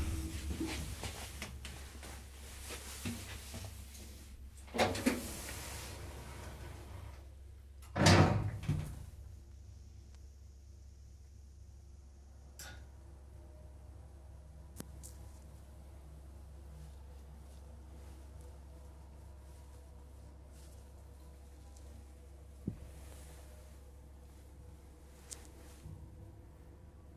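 An elevator car hums as it travels.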